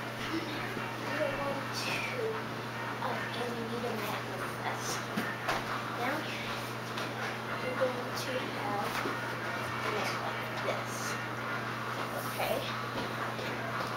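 A foam mat scrapes and bumps as a girl folds and moves it.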